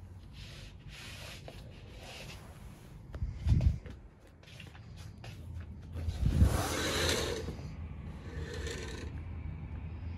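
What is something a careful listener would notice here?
Cloth rustles and brushes right against the microphone.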